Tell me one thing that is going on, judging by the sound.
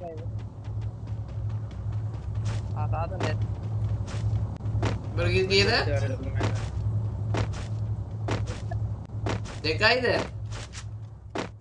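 Footsteps thud quickly and steadily on grass.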